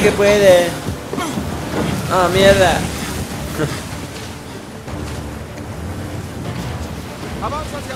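Waves crash and splash against a boat.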